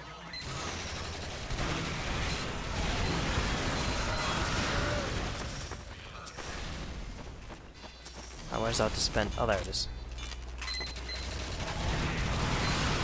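Game gunfire and battle noise rumble steadily.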